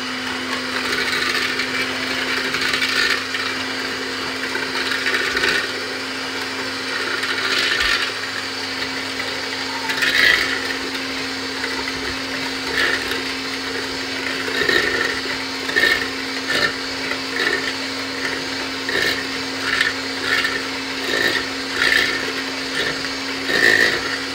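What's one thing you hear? An electric hand mixer whirs steadily.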